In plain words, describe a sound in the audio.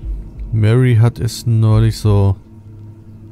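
A young man speaks loudly and expressively into a microphone, close up.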